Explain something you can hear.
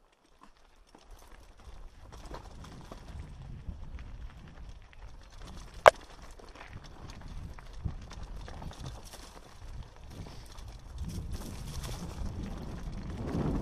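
Mountain bike tyres rattle and crunch over a rocky dirt trail.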